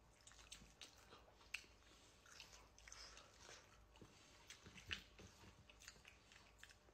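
Crispy food crackles as a woman tears it apart by hand.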